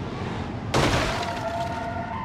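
A car crashes into another car with a loud metallic bang.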